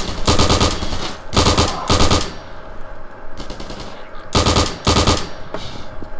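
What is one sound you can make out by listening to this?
A rifle fires in short rapid bursts.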